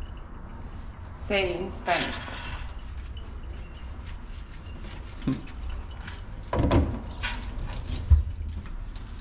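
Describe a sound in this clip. Water sprays and splashes steadily from a hand shower.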